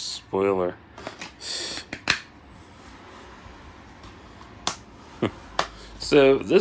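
A plastic disc case clicks and rattles in a hand.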